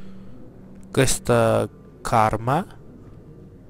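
A man speaks briefly in a calm voice.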